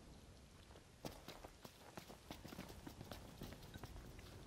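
Footsteps run quickly across stone paving.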